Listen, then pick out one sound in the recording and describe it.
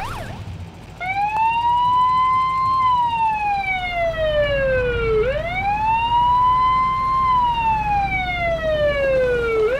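A police siren wails slowly, rising and falling.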